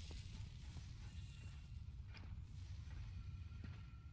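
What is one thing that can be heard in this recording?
Armour clanks softly as a figure walks.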